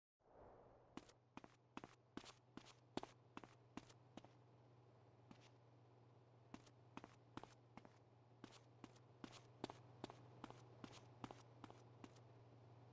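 Footsteps hurry across a hard floor indoors.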